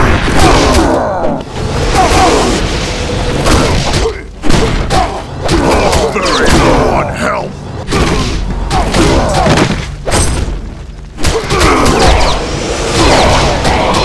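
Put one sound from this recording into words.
Heavy blows and punches thud and crash in a fast video game fight.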